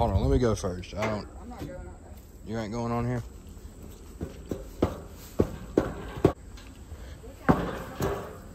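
Footsteps clang on a metal grating.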